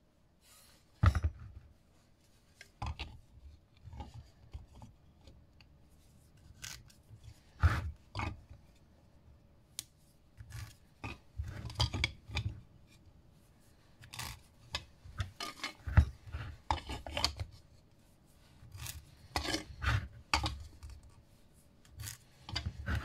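A wooden disc knocks and scrapes on a hard surface.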